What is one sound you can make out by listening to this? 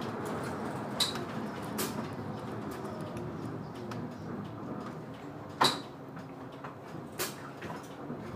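A bus body rattles and knocks over bumps.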